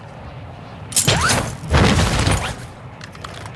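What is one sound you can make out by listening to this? A rope whizzes loudly as something slides down it.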